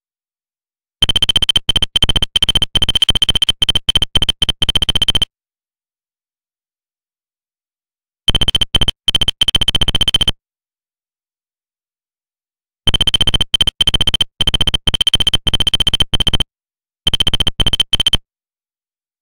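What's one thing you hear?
A rapid chatter of high electronic beeps comes in short bursts.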